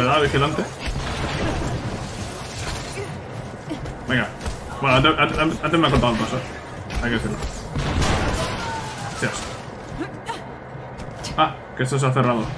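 Energy weapons fire in sharp bursts.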